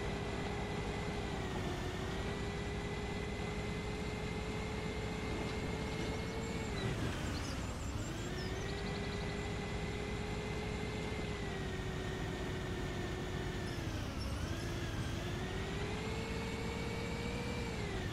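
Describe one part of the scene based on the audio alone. A bus engine hums steadily, its whine rising and dipping as the bus speeds up and slows.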